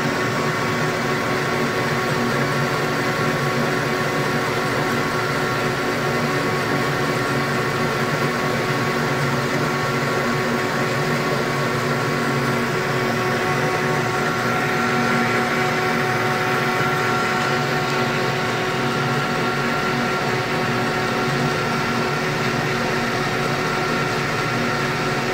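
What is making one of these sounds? A lathe motor hums and whirs steadily.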